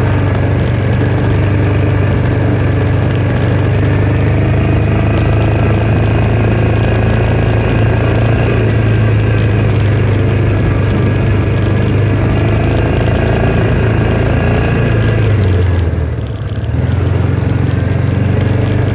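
A vehicle engine hums steadily as it drives across bumpy ground.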